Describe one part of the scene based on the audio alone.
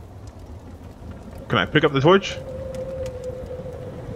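A torch flame crackles and hisses close by.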